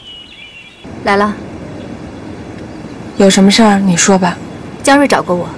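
A young woman speaks calmly and firmly, close by.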